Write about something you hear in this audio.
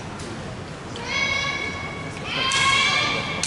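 Young women give long, loud shouts in an echoing hall.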